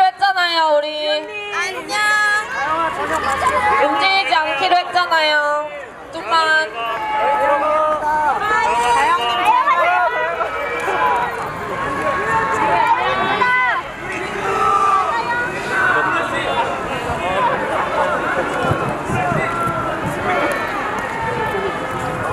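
Upbeat pop music with a woman singing plays loudly from a loudspeaker outdoors.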